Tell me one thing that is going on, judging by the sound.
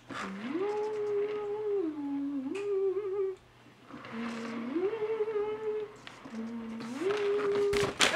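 A plastic snack bag crinkles.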